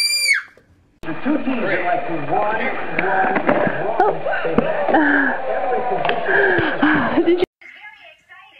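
A baby giggles and fusses.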